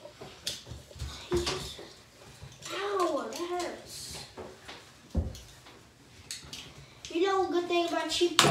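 Metal hair clips click and rattle in a girl's hands.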